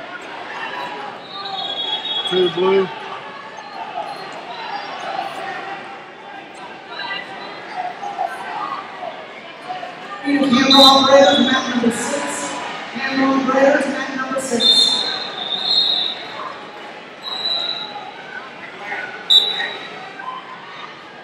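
A crowd murmurs and calls out in a large echoing hall.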